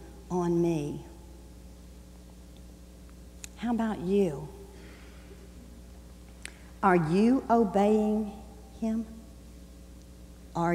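An elderly woman speaks slowly through a microphone, with long pauses.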